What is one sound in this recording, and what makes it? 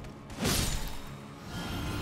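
A magic spell bursts with a sharp, shimmering whoosh.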